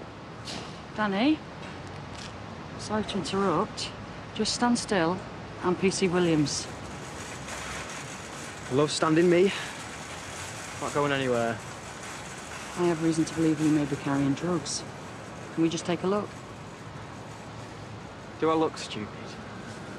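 A woman speaks calmly and firmly nearby.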